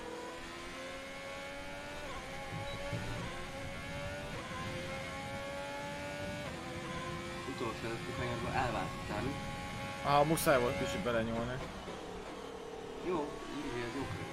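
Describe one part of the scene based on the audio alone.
A racing car engine whines and shifts gears steadily.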